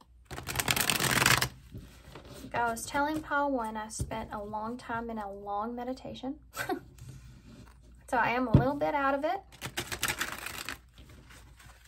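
Cards riffle and flutter briskly as a deck is shuffled.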